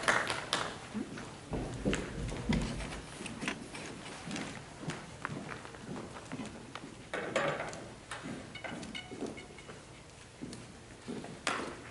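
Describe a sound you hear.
Footsteps cross a wooden stage in a large echoing hall.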